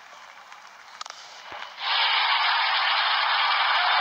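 A cricket bat strikes a ball with a sharp knock.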